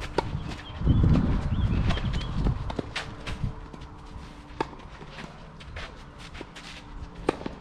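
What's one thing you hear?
Footsteps scuff and slide on a clay court.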